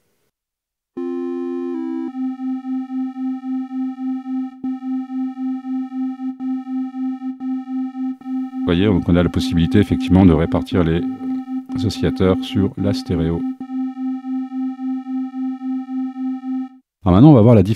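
A synthesizer plays a steady pulsing electronic tone.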